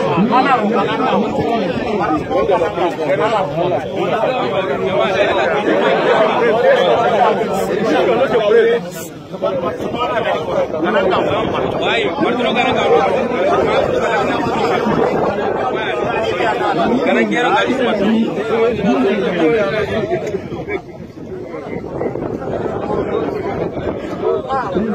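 A large crowd of men talks all at once, close by.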